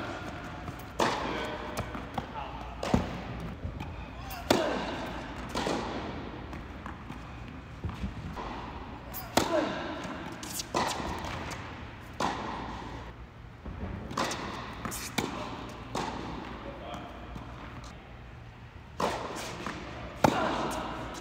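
Tennis balls are struck sharply back and forth, echoing in a large indoor hall.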